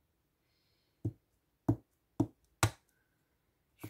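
A stamp block taps firmly against paper several times.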